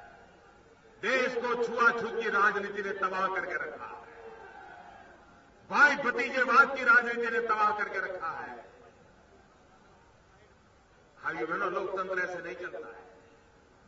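An elderly man speaks forcefully into a microphone over loudspeakers, in bursts with pauses.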